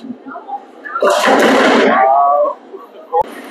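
Bowling pins crash and scatter.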